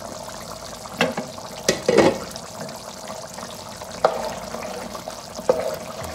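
A spoon knocks against a metal pan.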